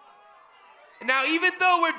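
A man speaks loudly into a microphone over loudspeakers.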